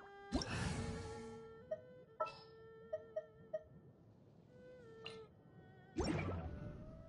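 Bright electronic chimes ring and sparkle.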